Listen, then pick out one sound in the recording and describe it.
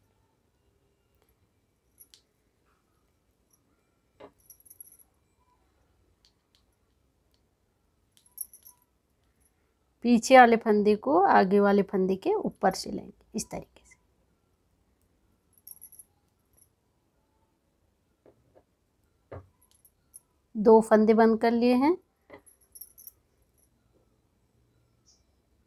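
Metal knitting needles click softly against each other.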